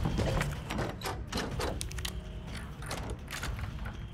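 A key clicks and turns in a door lock.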